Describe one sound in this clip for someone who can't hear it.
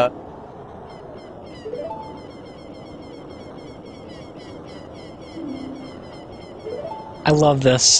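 Short electronic blips tick rapidly and steadily.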